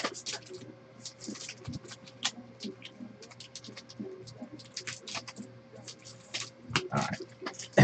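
Trading cards riffle and click as they are shuffled by hand.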